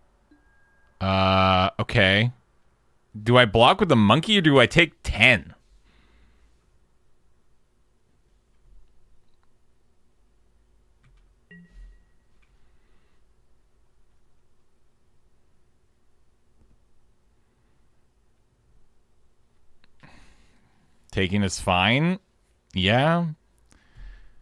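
A man speaks with animation through a headset microphone, close up.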